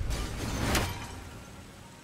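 An axe strikes hard with a crack.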